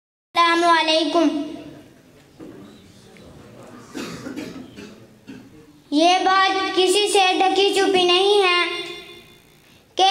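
A boy speaks loudly and with passion into a microphone, heard through a loudspeaker in an echoing hall.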